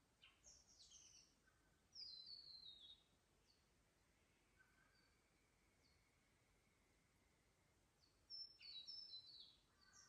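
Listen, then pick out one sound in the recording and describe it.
Water trickles softly over stones.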